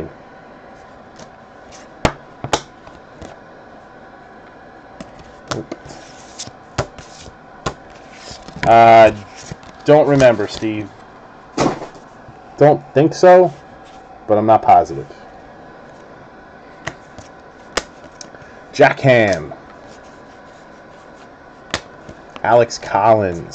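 Trading cards flick and slide against each other.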